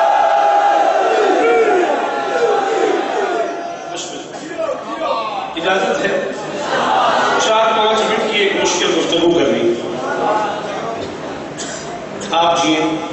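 A man speaks passionately into a microphone, heard through a loudspeaker in an echoing hall.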